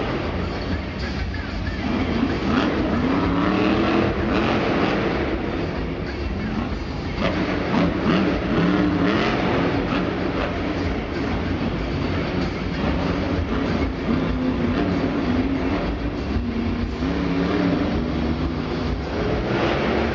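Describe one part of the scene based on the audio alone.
A monster truck engine revs hard in a large echoing indoor arena.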